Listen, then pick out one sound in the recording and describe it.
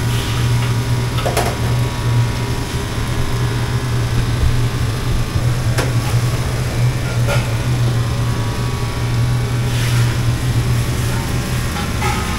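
A gas burner roars.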